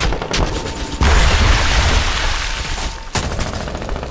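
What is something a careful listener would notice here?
An explosion roars loudly and rumbles.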